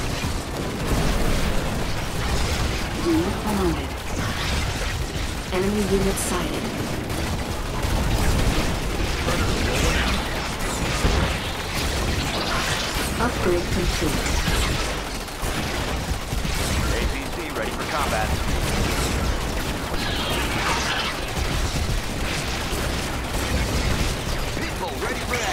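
Laser beams zap and weapons fire in rapid bursts.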